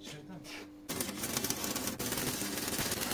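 A welding arc crackles and hisses.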